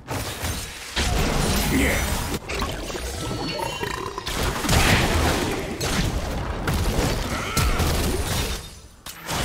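Spell effects crackle and boom in a fast clash of a video game battle.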